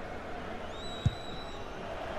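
A football is struck hard with a single thud.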